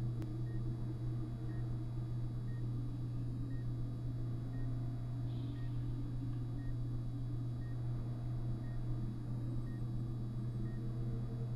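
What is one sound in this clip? A heart monitor beeps softly at a steady pace.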